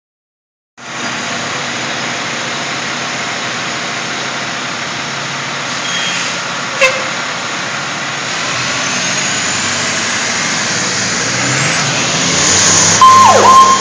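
A fire truck engine idles and rumbles steadily.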